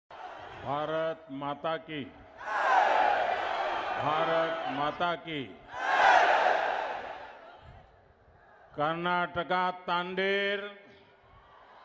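An elderly man shouts slogans forcefully through a microphone and loudspeakers.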